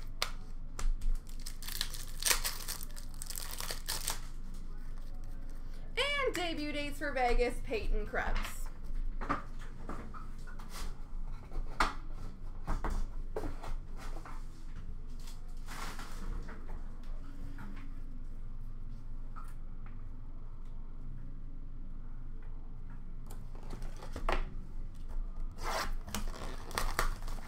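Trading cards rustle and flick as they are handled.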